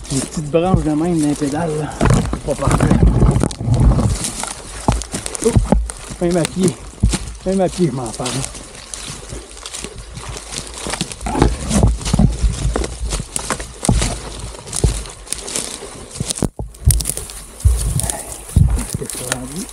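Brush and twigs crackle underfoot.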